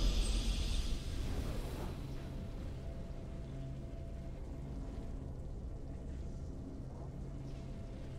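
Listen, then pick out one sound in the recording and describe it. A triumphant musical fanfare plays steadily.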